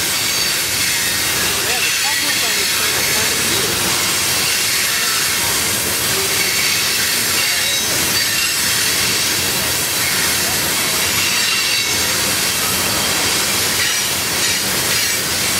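A freight train of tank cars rolls past, its steel wheels rumbling and squealing on the rails.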